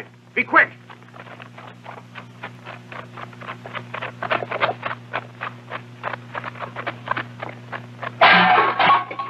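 Many feet run quickly across dirt.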